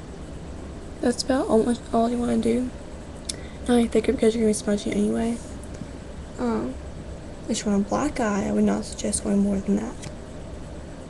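A young woman talks casually, close to a microphone.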